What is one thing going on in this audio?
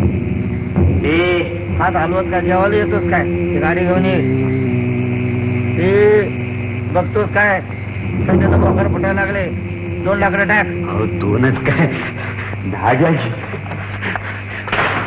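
A man sings loudly through an old, thin-sounding recording.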